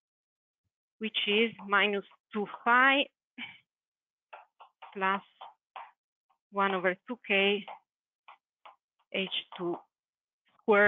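A woman speaks calmly, as if teaching.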